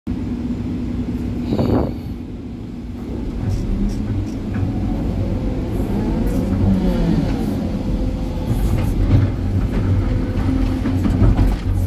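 A heavy excavator's diesel engine rumbles steadily from inside the cab.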